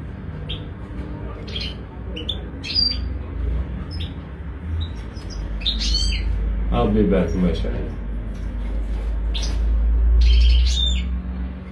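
A small bird chirps in short, high bursts close by.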